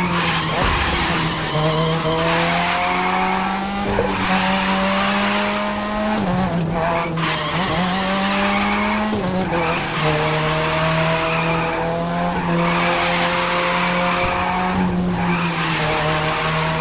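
A car engine roars at high revs, rising and dropping with gear changes.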